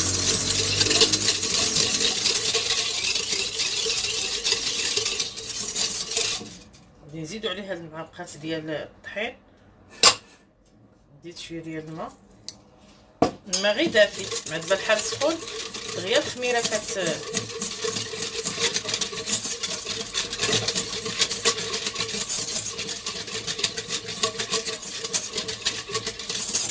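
A wire whisk scrapes and clicks rapidly against a metal bowl.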